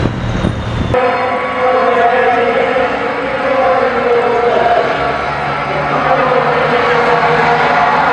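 Racing truck engines roar in the distance.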